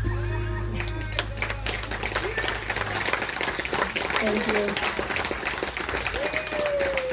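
A live band plays outdoors through loudspeakers.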